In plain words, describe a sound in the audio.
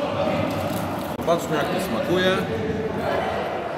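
Paper wrappers rustle close by.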